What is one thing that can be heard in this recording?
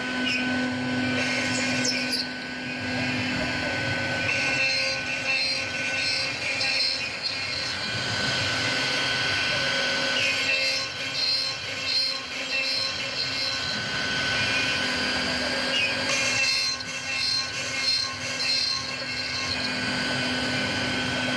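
A drill bit bores into wood with a rough grinding noise.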